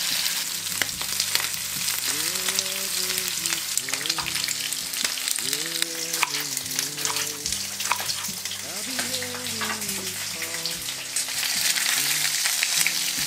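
Pork belly sizzles in a frying pan.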